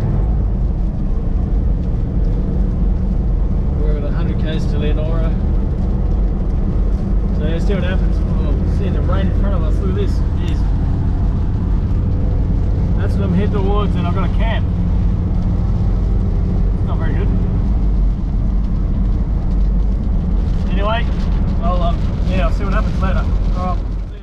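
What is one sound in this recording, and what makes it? A vehicle's engine and tyres rumble steadily on the road.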